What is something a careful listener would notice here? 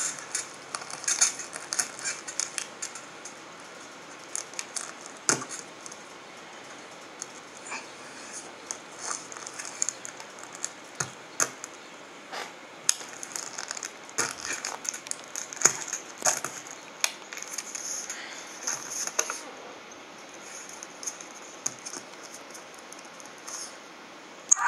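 Plastic toy figures knock and scrape against a hard surface.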